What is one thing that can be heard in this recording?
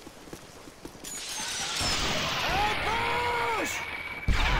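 An explosion booms close by and rumbles.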